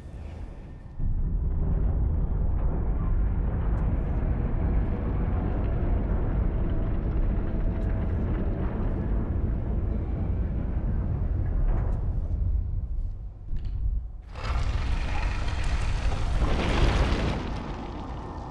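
A deep rumble of grinding stone rolls on steadily.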